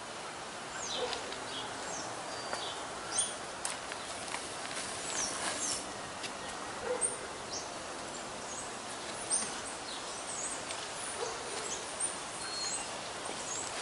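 Hands rake and rustle through loose soil.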